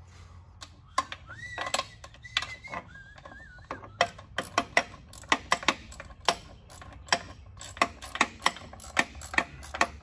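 A ratchet wrench clicks in short, quick strokes.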